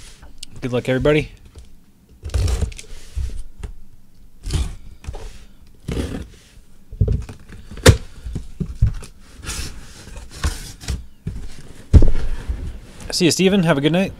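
Hands slide and bump a cardboard box around.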